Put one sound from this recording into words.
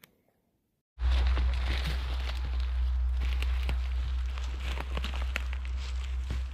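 Footsteps rustle through dry leaves on the forest floor.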